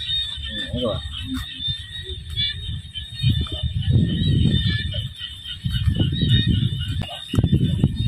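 Footsteps scuff on a paved path.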